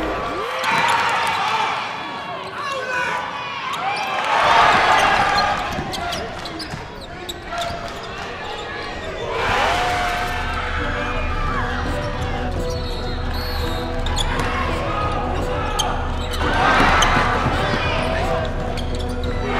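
A crowd cheers and shouts in a large echoing gym, rising in bursts.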